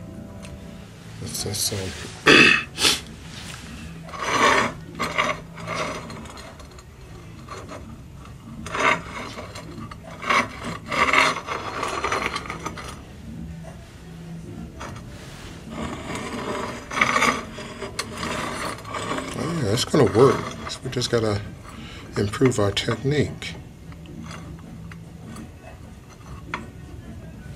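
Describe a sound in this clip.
Clay tiles clack and scrape against a hard stone surface.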